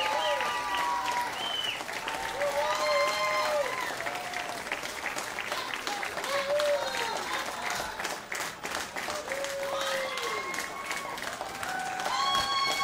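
A crowd of men and women shouts and cheers nearby.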